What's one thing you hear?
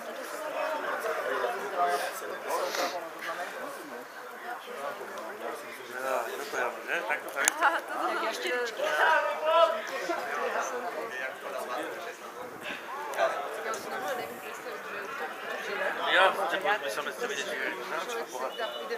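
Men among a small crowd of spectators chat close by outdoors.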